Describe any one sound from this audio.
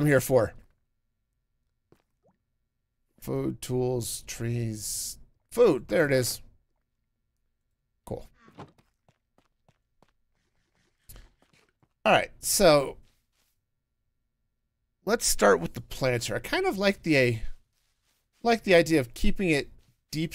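A middle-aged man talks casually into a close microphone, in short bursts with pauses.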